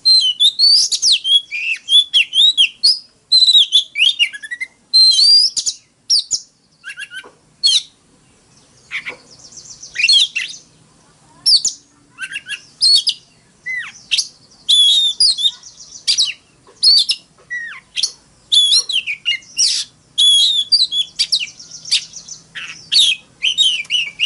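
A songbird sings loud, whistling and chattering phrases up close, with short pauses between them.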